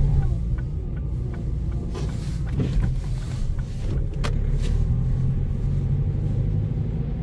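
A car drives on a snowy road, its engine and tyres rumbling low from inside.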